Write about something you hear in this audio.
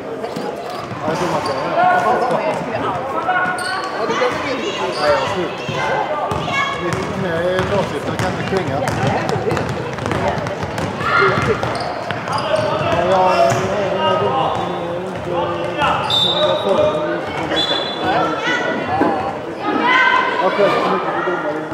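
Young women call out to each other across a large echoing hall.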